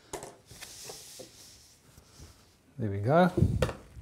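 A frame's lid creaks open.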